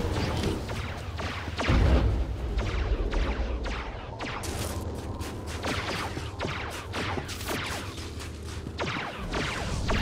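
Quick footsteps crunch over snow.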